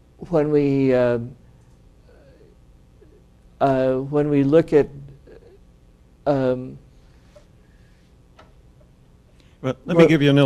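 A middle-aged man speaks slowly into a microphone, with long pauses.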